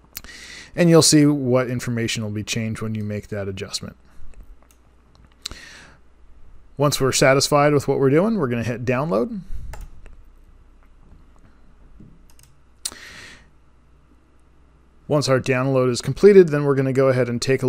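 A man speaks calmly into a close microphone, with pauses.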